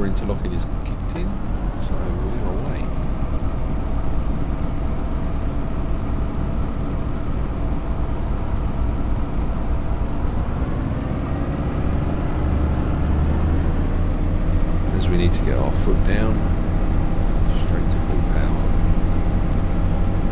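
A train's electric motors whine and rise steadily in pitch as it picks up speed.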